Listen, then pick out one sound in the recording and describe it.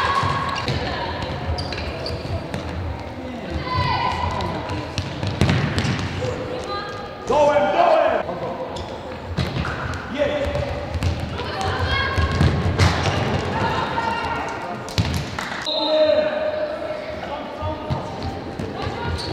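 Players' shoes squeak on an indoor court in a large echoing hall.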